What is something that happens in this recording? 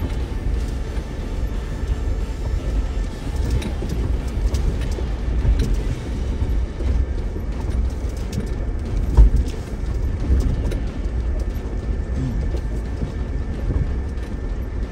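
Tyres crunch and grind over loose rocks and gravel.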